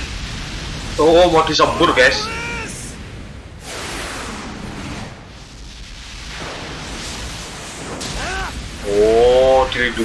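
A fiery blast roars.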